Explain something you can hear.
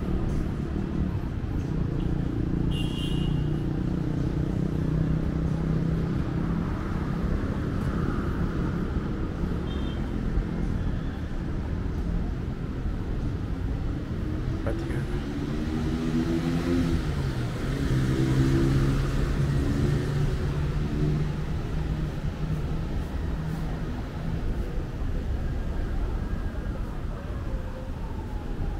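Traffic rumbles steadily along a nearby road outdoors.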